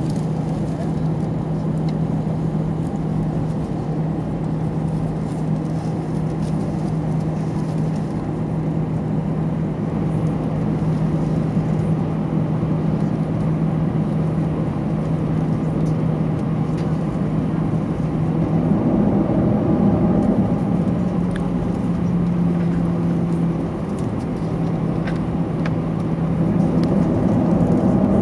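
A jet engine hums steadily, heard from inside an airplane cabin.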